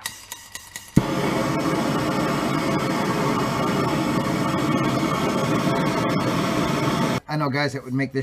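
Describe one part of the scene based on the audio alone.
A blowtorch roars with a steady hiss.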